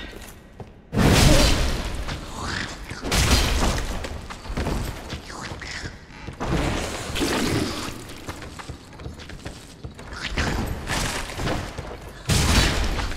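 A heavy blade swings and crashes against a creature.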